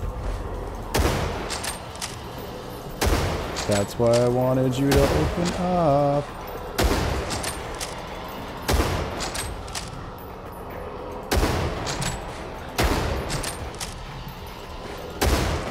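A rifle fires single shots that echo down a corridor.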